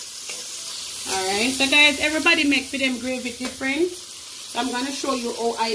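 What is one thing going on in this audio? A spatula scrapes and stirs vegetables in a pan.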